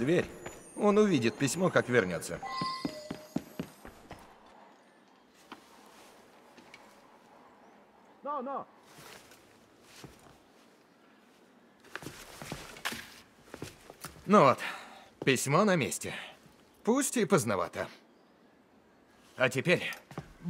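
A young man speaks quietly and thoughtfully, close by.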